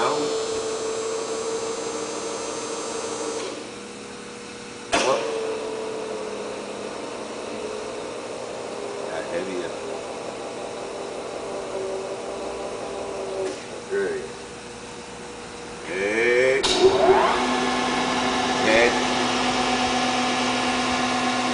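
A large machine hums steadily.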